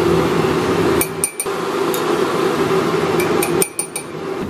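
A metal spoon clinks against a ceramic mug.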